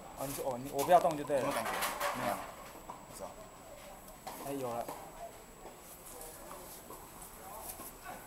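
A man speaks close by, explaining.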